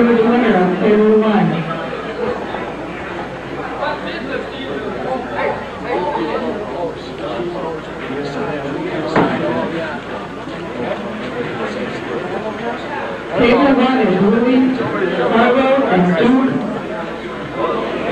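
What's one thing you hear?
A crowd chatters and murmurs in an echoing hall.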